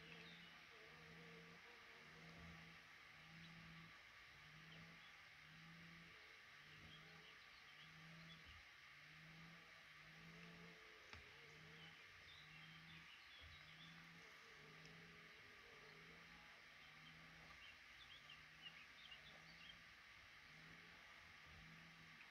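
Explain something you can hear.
Baby birds cheep faintly in a nest.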